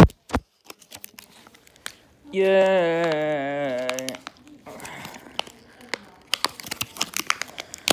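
Plastic packaging crinkles and clicks.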